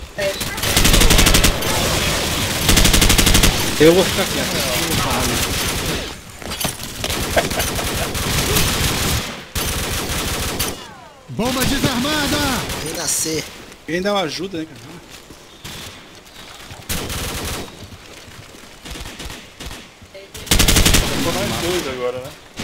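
Rapid bursts of gunfire crack loudly.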